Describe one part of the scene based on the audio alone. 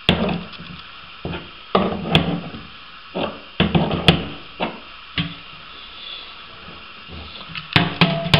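Fingers tap and scrape against a metal pipe fitting.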